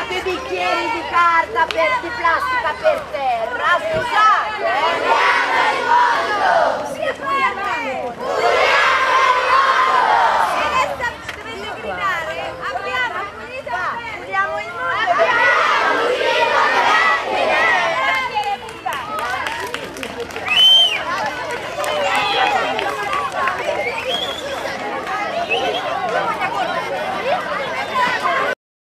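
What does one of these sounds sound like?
A large crowd of children chatter and shout excitedly close by, outdoors.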